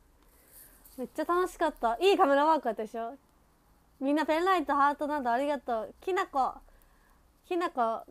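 A young woman speaks cheerfully and animatedly, close to a microphone.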